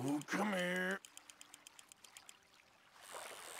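A fishing reel clicks rapidly as the line is wound in.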